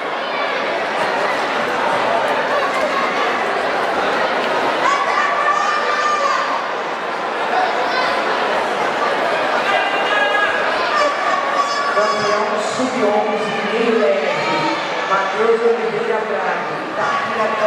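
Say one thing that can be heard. A crowd of men and women chatters and calls out in a large echoing hall.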